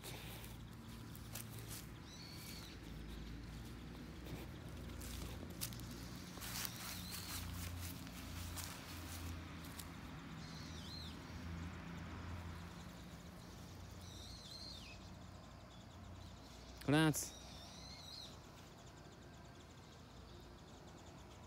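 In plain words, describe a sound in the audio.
A dog sniffs loudly at the ground.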